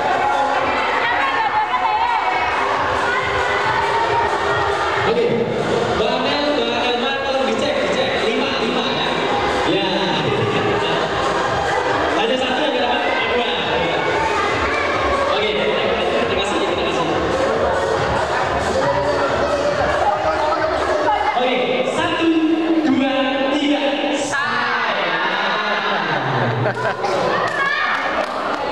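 A crowd of teenagers chatters and laughs in an echoing hall.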